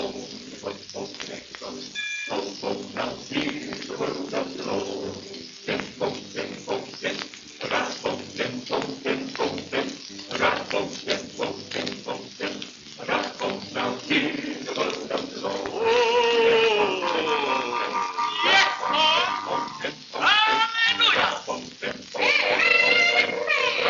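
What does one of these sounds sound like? A record crackles and hisses as it spins.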